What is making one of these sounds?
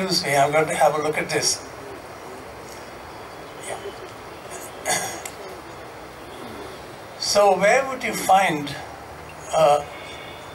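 An elderly man speaks calmly into a microphone, with pauses, in a large echoing hall.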